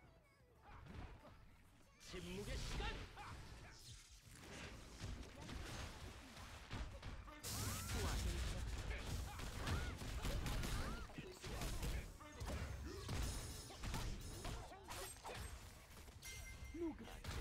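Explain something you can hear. Explosions boom and blasts crackle in a video game.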